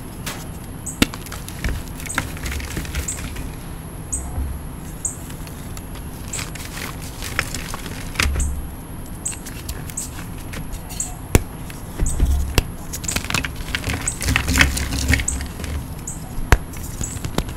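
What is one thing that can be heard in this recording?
Chunks of chalk tap and knock together.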